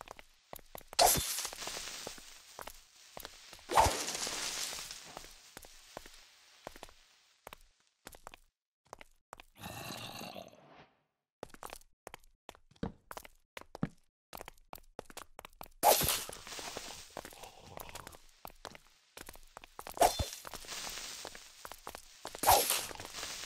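A sword strikes a creature with sharp, heavy thuds.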